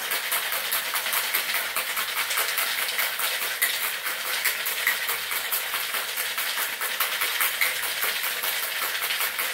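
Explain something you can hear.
Ice rattles rapidly in a cocktail shaker being shaken hard.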